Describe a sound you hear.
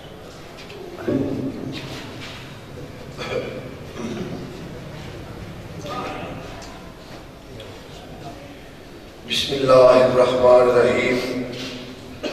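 A man recites loudly into a microphone, heard through a loudspeaker in an echoing hall.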